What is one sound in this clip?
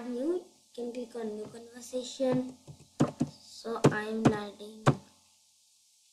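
A young boy speaks close to a microphone.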